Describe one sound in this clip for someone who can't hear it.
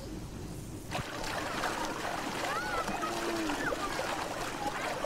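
Horses splash through shallow water.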